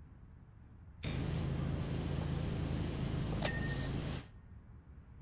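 A pressure washer sprays water with a steady loud hiss.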